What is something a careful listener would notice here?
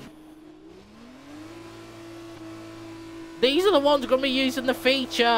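A racing car pulls away, its engine rising in pitch.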